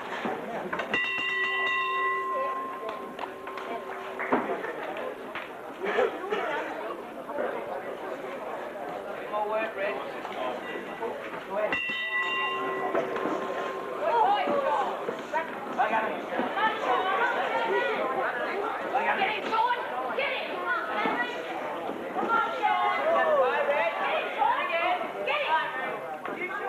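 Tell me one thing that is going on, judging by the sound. A crowd of spectators chatters and shouts in a large echoing hall.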